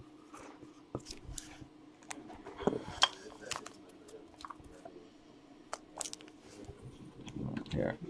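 A plastic case clicks and rattles as hands handle it.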